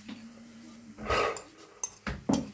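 A bowl knocks onto a metal plate.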